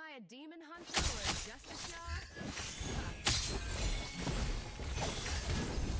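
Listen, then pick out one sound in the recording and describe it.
Video game spell effects whoosh and clash in a fight.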